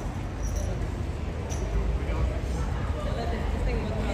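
A metal chain clinks and rattles as it is hung up.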